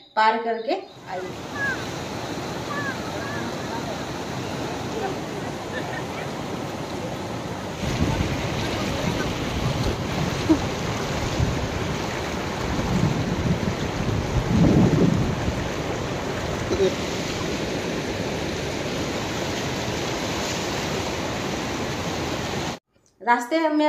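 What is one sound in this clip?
Floodwater rushes and roars steadily.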